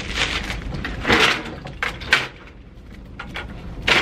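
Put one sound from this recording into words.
A printer tray clacks open and shut.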